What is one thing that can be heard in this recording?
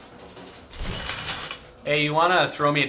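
Shower water sprays and hisses.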